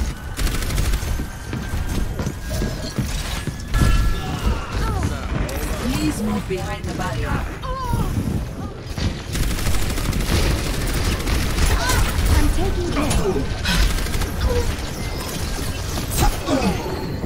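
Rapid gunfire and explosions boom in a game.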